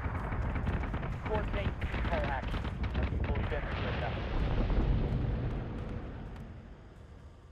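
A huge spaceship's engines rumble deeply.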